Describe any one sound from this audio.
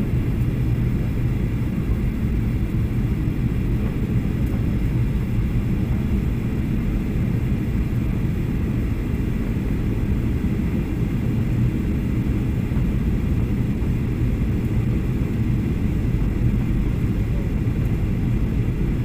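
A jet engine roars steadily with a deep cabin rumble.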